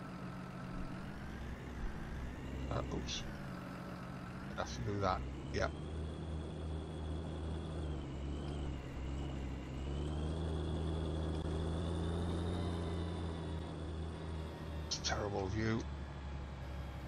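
A tractor engine rumbles steadily, its pitch rising and falling with speed.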